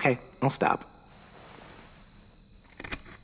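A knife scrapes and carves into wood.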